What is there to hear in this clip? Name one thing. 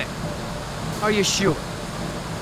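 A man asks a short question.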